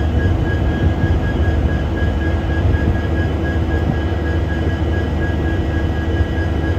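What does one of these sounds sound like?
A diesel locomotive idles with a deep, steady rumble.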